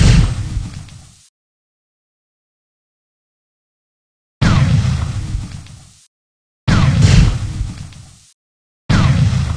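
Explosions boom and rumble, each fading away.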